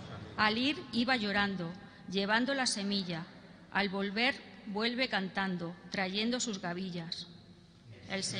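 A woman sings a slow chant through a microphone in a large echoing hall.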